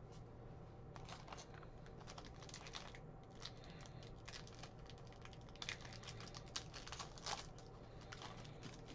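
Foil wrapping crinkles as a card pack is torn open.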